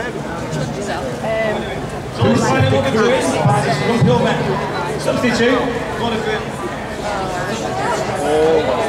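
A man sings into a microphone through loudspeakers.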